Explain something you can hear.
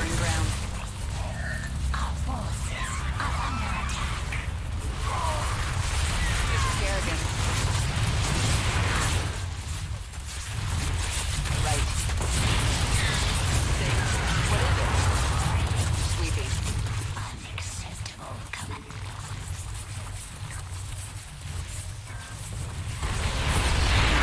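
Explosions and gunfire crackle and boom.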